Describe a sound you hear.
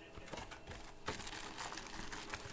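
Cardboard box flaps are pulled open.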